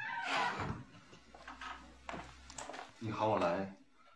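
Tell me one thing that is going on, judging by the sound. A door closes with a thud.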